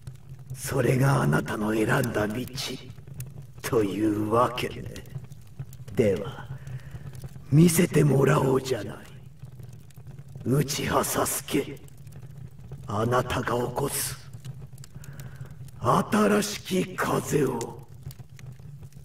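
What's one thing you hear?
A young man speaks calmly and coldly.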